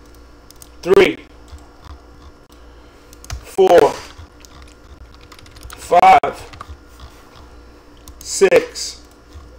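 A mouse button clicks.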